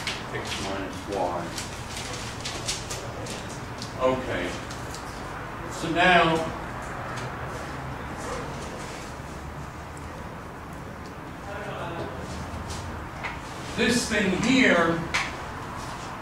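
An elderly man speaks calmly, in short bursts with pauses.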